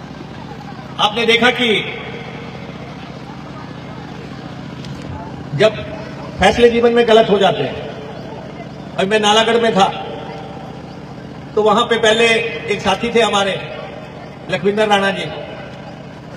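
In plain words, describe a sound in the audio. A man speaks forcefully in bursts through a loudspeaker microphone.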